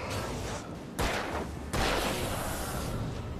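A revolver fires a loud shot that echoes.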